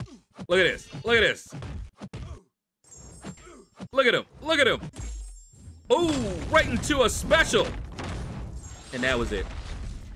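Punches and blows thud in a fast video game fight.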